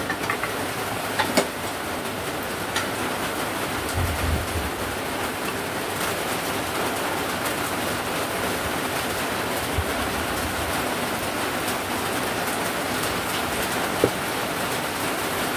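Metal engine parts clink and scrape as they are pulled apart.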